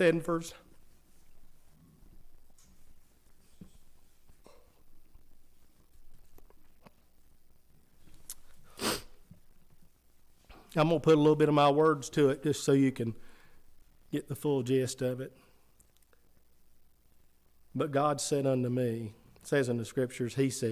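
A middle-aged man speaks with feeling into a microphone, pausing often.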